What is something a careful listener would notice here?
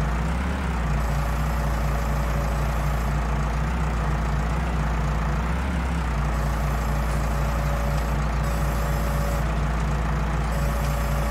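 A hydraulic loader whines as it lifts.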